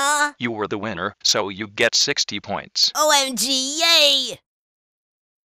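A young woman speaks cheerfully in a high, animated voice.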